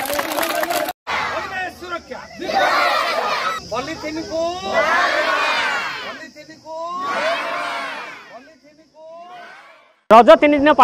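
A crowd of men and children shouts slogans in unison.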